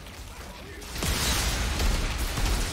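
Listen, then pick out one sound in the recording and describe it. A fiery explosion roars loudly.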